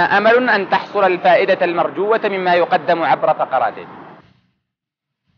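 A young man speaks steadily into a clip-on microphone.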